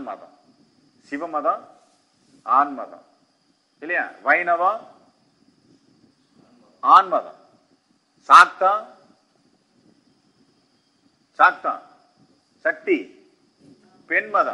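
A man speaks slowly and calmly into a microphone, in short phrases with pauses.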